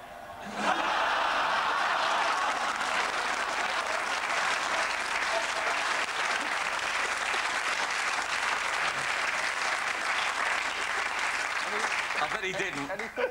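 A large crowd laughs and cheers loudly.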